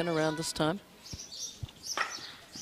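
A hockey stick hits a ball with a sharp crack.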